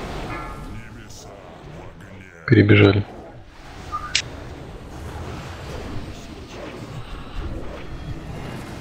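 Magic spells crackle and burst in a busy battle.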